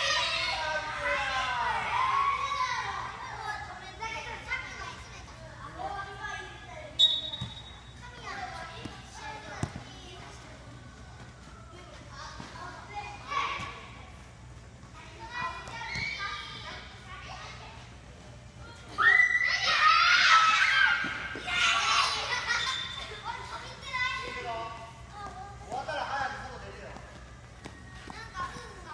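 Young children shout and cheer, echoing loudly.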